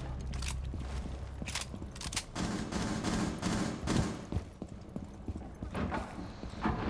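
Footsteps tap quickly on hard stairs and floor.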